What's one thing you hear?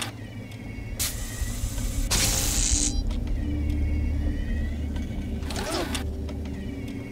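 A mechanical probe hums with a low, steady drone that grows louder.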